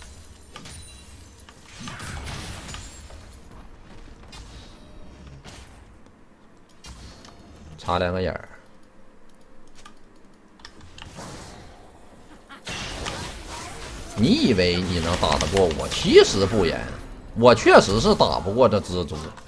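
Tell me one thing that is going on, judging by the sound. Game sounds of spells and hits crackle and boom.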